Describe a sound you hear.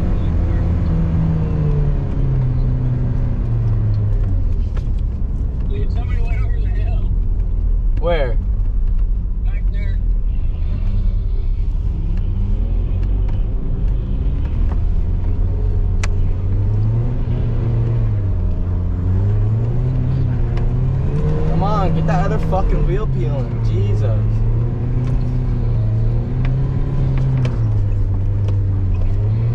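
Tyres rumble and crunch over a snowy road.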